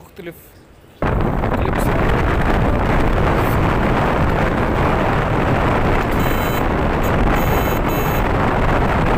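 Wind buffets the microphone with a loud, steady roar.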